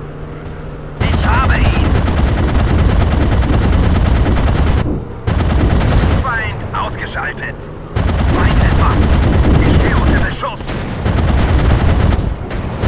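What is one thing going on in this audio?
Machine guns fire in loud rapid bursts.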